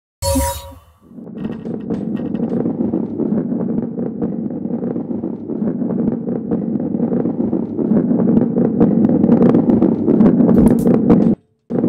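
A heavy ball rolls along a wooden track with a steady rumble.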